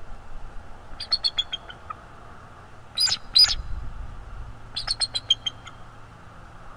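A bald eagle calls with a series of sharp, high chirping bursts.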